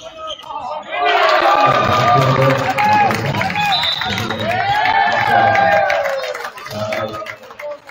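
A crowd cheers and shouts loudly in a large echoing gym.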